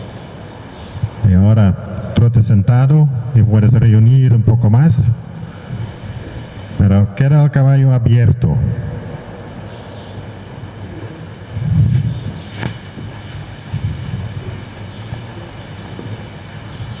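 A horse's hooves thud softly on sand.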